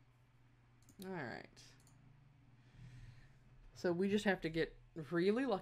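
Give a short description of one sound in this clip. A young woman speaks casually into a microphone, up close.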